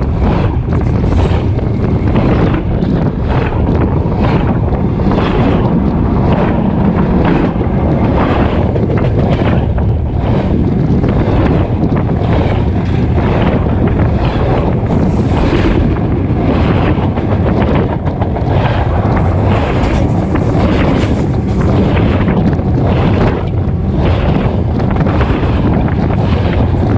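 Steel wheels of freight cars rumble and clatter over the rails close overhead.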